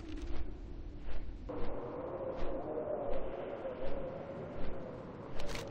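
Large wings flap in slow, steady beats.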